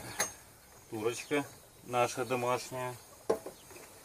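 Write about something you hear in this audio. A bearded man speaks calmly, close to the microphone.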